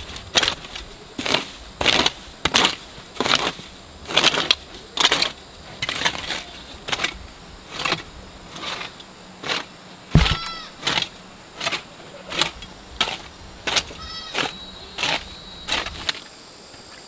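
A hoe scrapes and chops into dry soil in steady strokes.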